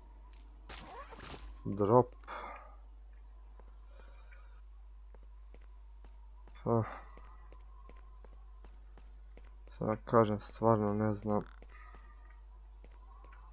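Footsteps tread on concrete.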